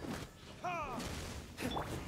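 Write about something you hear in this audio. Flames burst with a roar.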